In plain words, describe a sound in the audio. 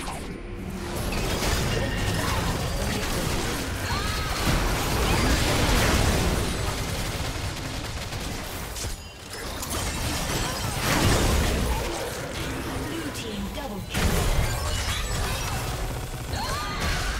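Spells and attacks crackle and explode in a fast game battle.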